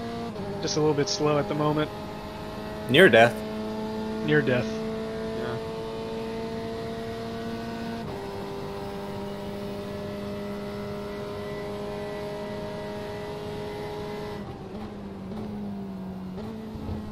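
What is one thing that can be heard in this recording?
A racing car engine drones steadily, dropping in pitch as it shifts gear.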